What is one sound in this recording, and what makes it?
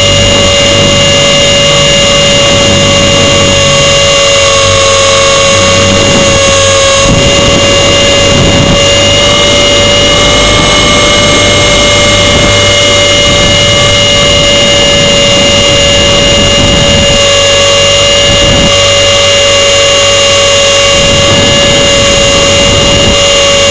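Wind buffets and rumbles against the microphone.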